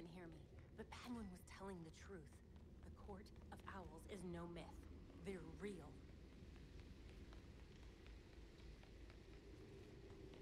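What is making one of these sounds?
Footsteps run on a stone floor.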